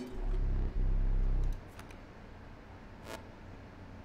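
A card is set down on a wooden table.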